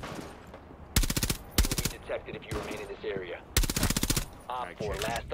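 A rifle fires loud shots in short bursts.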